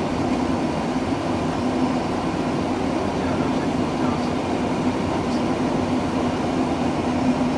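A steady, loud roar of engines and rushing air fills an aircraft cockpit.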